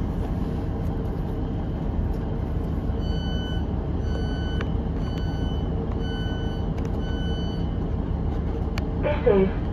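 A train hums steadily while standing at a platform, heard from inside a carriage.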